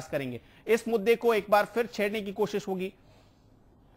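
A man speaks quickly into a microphone.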